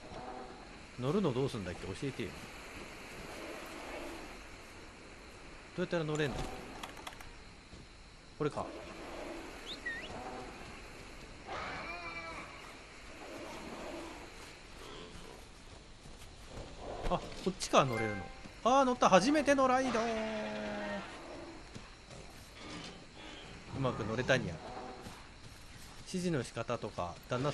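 A large beast roars and growls loudly.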